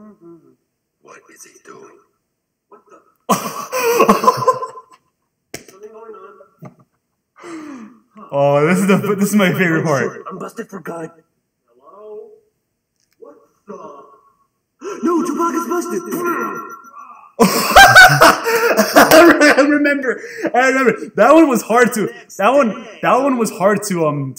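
A young man talks and laughs with animation into a microphone.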